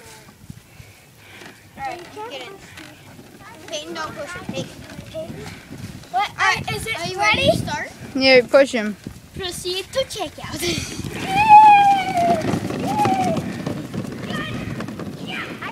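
Plastic wagon wheels rumble over grass.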